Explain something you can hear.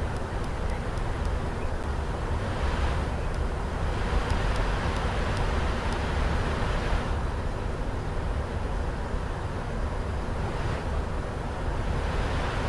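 An airliner's engines and rushing air make a steady low roar in flight.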